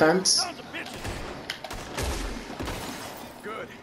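Gunshots crack and echo in a wooden building.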